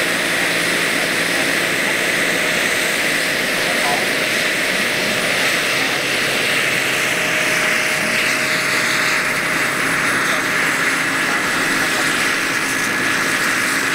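A turbine engine of a large radio-controlled model helicopter whines at high speed.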